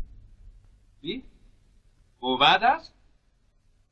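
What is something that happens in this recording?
An older man asks a short question in a low voice.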